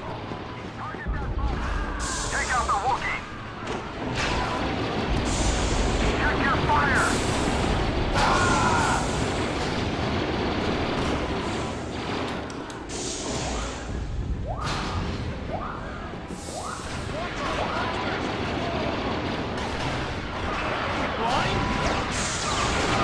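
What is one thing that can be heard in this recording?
Blaster rifles fire in rapid bursts of laser shots.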